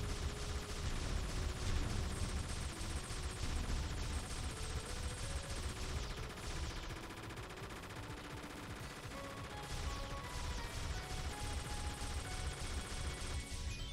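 Rapid shots fire in a steady stream of quick bursts.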